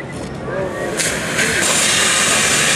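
A fire hose sprays water with a loud rushing hiss.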